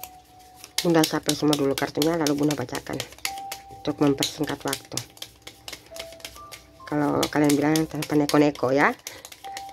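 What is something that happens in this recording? Wooden pieces clack and rub together in the hands.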